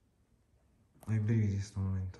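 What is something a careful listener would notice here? A man speaks close by in a low voice.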